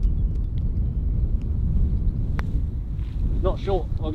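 A golf ball is tapped with a putter.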